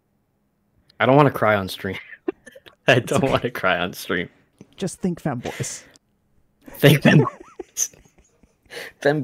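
A man laughs heartily over an online call.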